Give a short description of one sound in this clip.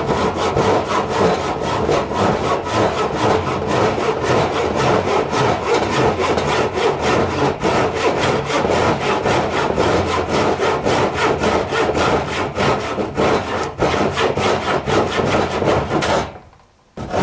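A knife rapidly chops and shaves a piece of wood close by.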